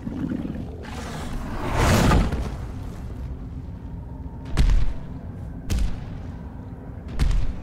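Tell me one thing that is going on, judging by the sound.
A large creature growls and roars.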